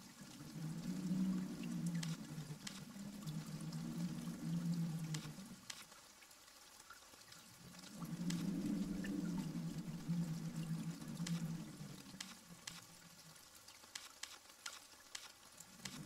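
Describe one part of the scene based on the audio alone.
Cards slide and tap softly into place.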